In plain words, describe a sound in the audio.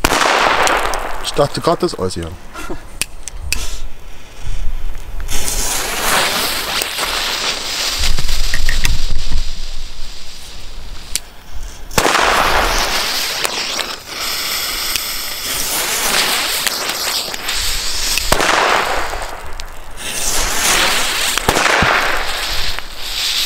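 Firecrackers pop and bang sharply.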